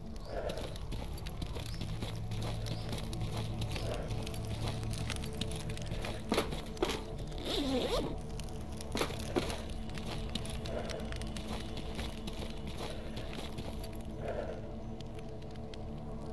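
Footsteps crunch through grass and brush.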